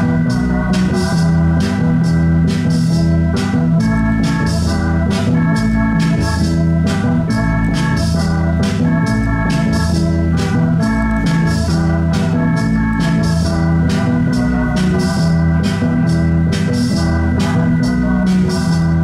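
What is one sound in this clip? An electronic keyboard plays a repeating melody with a deep bass line, loud and close.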